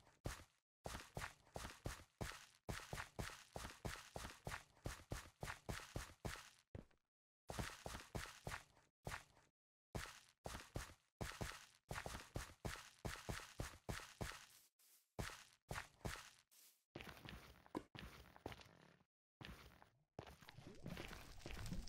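Footsteps crunch quickly over leaves and dirt.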